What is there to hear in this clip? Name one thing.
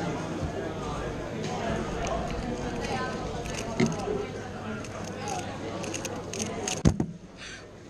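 Plastic puzzle pieces click and rattle as they are turned quickly.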